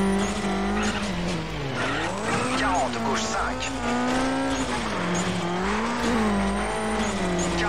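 A rally car engine hums and revs up and down.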